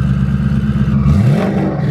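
A car engine revs up sharply near the end.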